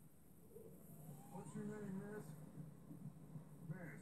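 Flames roar and crackle through a television speaker.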